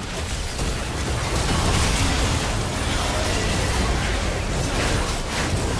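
Spell blasts and weapon hits crackle and boom in a frantic fantasy battle.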